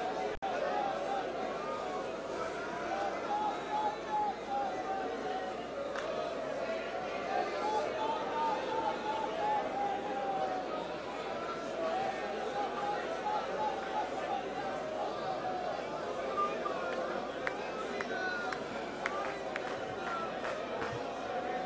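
A congregation of men and women sings together in a large echoing hall.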